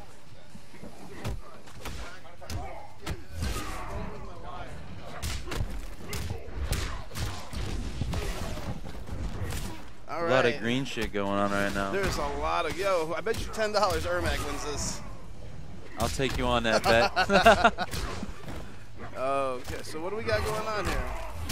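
Punches and kicks land with sharp thuds in quick succession.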